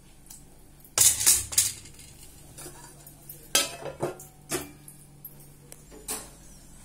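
A steel plate clatters onto a stone counter.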